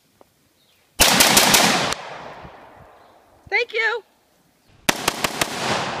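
Firecrackers bang sharply outdoors.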